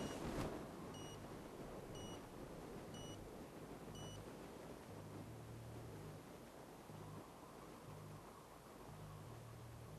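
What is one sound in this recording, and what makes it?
Wind rushes past a car gliding under a parachute.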